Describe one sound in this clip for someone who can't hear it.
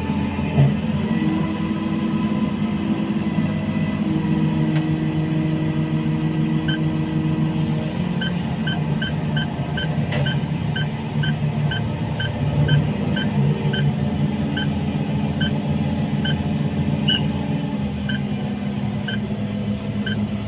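A crane's engine hums under load.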